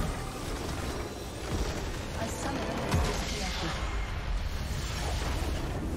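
Fighting sound effects clash and crackle loudly in a video game.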